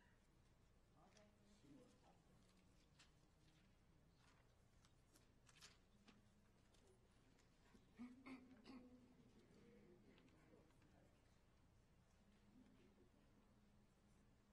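A man speaks softly and calmly in a large echoing hall.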